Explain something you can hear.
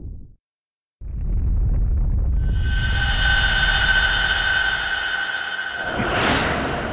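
A fiery blast roars and rings.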